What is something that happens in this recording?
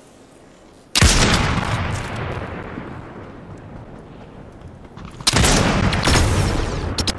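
A rifle fires loud booming shots that echo away.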